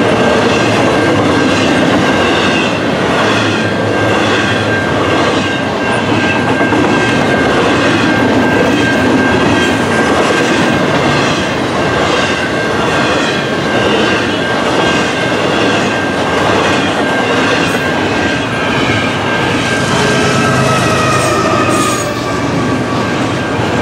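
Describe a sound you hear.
A long freight train rumbles past close by, with wheels clattering over the rail joints in a steady rhythm.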